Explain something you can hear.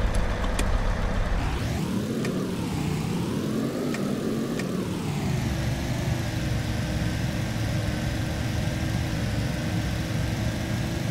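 A vehicle engine hums steadily and revs up and down.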